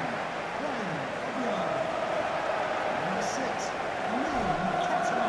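A large crowd cheers and chants steadily in an open stadium.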